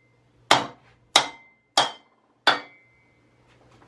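A hammer strikes metal several times with ringing blows.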